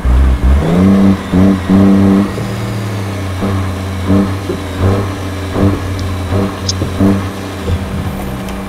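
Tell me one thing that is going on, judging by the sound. An air horn blasts in short bursts.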